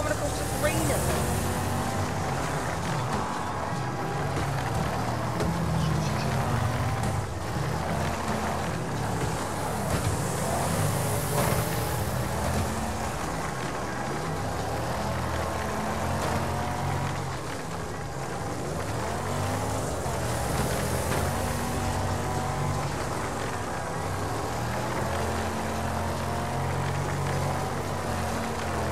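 A banger race car engine revs hard in low gears.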